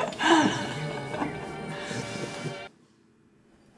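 A woman laughs happily close by.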